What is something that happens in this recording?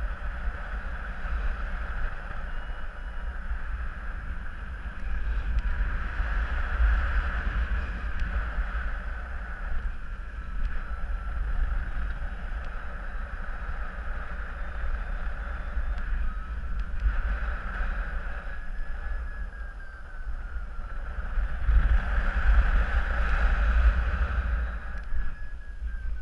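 Wind rushes and buffets loudly past the microphone.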